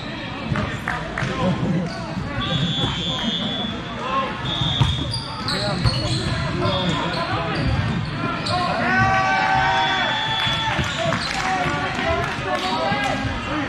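A crowd of young people talks and calls out in a large echoing hall.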